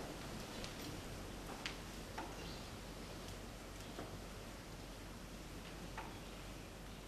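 Soft thumps and knocks sound now and then as people kneel on a carpeted floor.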